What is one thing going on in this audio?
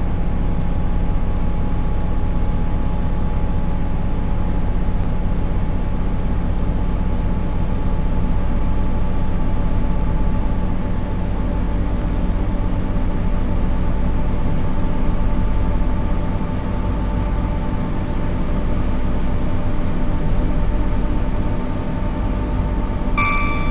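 An electric train motor hums steadily and rises slowly in pitch as it speeds up.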